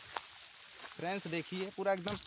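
A young man speaks close to the microphone with animation.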